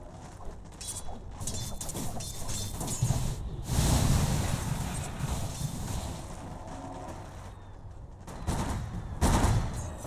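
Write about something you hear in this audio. Weapons clash as game characters fight.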